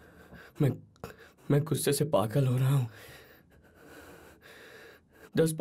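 A young man speaks with surprise, close by.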